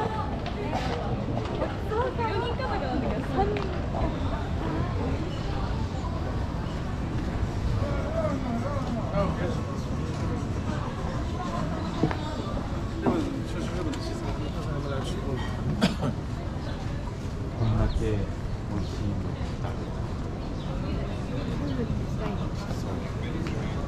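Men and women talk casually nearby, outdoors.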